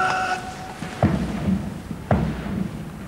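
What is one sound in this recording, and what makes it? Soldiers slap and stamp as they move their rifles in drill.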